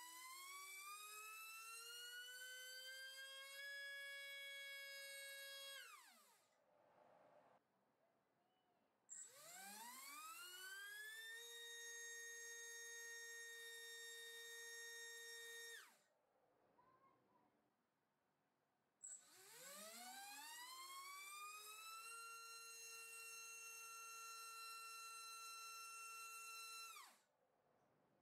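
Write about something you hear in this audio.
A small electric motor spins a propeller with a high whine that rises to a steady pitch, then winds down.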